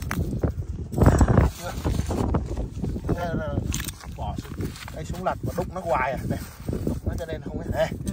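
A garden fork digs into wet, gritty mud with crunching scrapes.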